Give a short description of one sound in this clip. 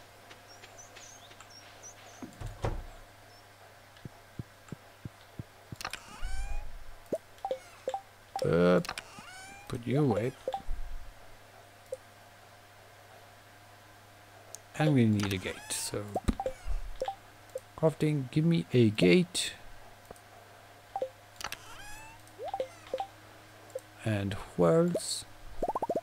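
Short electronic blips and clicks sound from a game.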